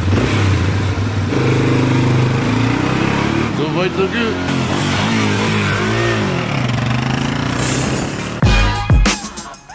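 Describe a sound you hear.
A quad bike drives off along a road.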